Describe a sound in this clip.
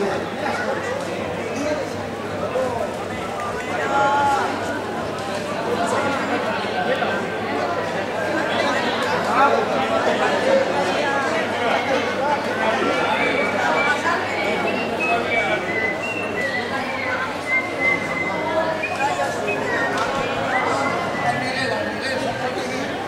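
A crowd of men and women chatters loudly all around, in a space that echoes.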